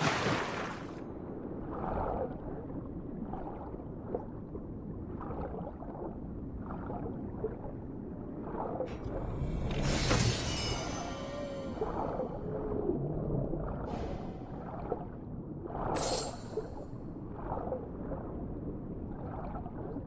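A muffled underwater rumble goes on steadily.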